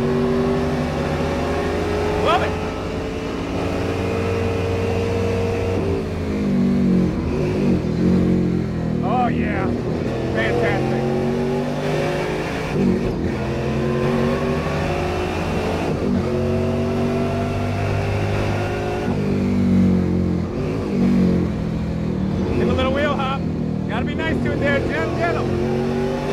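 A car engine roars loudly from inside the cabin, rising and falling in pitch as gears change.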